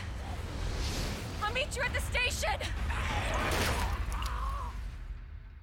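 A young woman answers, shouting.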